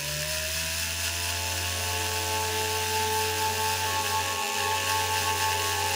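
A small engraving tool scrapes and cuts into metal with a steady, hissing whir.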